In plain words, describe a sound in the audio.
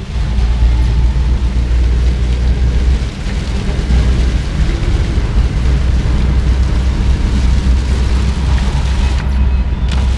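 Rain patters against a car window.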